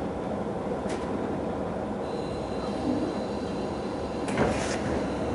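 A train rumbles slowly along the tracks with a steady low hum.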